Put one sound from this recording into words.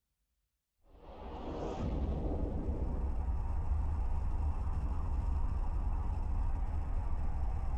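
A deep spaceship engine rumbles and roars as it warps.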